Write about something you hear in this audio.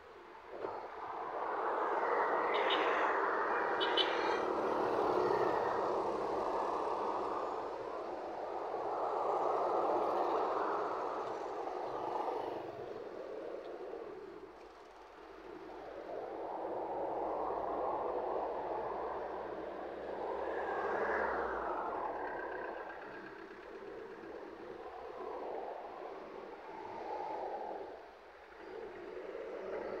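Traffic passes by on a road outdoors.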